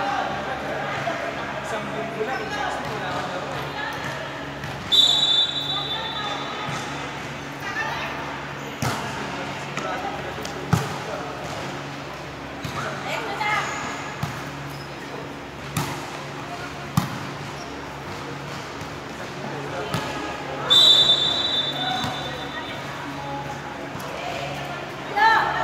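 Young women call out and shout to one another during play.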